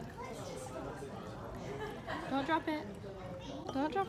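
Wine pours and splashes into a glass.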